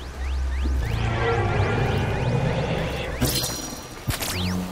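An electric charge crackles and hums.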